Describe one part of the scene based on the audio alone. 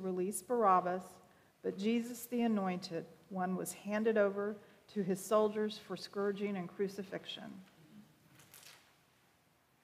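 A middle-aged woman reads out calmly through a microphone.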